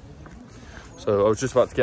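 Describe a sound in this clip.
A young man speaks close up.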